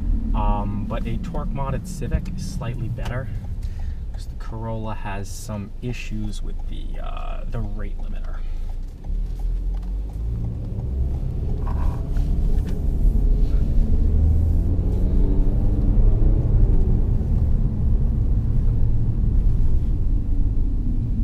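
A car engine hums steadily with road noise.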